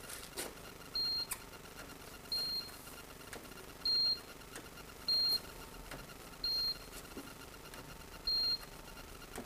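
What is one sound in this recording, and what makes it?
A handheld device beeps briefly at intervals.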